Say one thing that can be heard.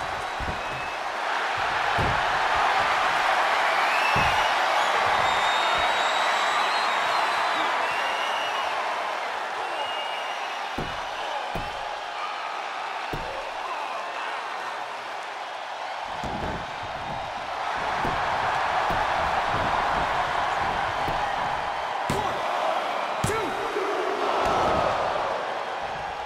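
A large crowd cheers and roars throughout.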